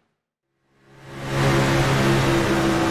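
A single race car engine roars loudly from close by.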